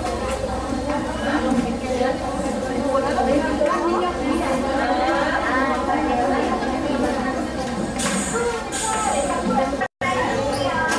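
A man speaks through a microphone over loudspeakers in an echoing room.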